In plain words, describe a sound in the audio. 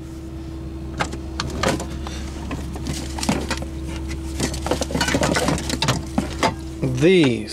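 Objects clatter and knock as a drawer is rummaged through.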